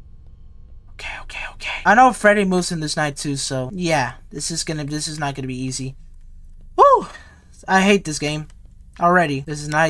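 A young man talks with animation into a headset microphone.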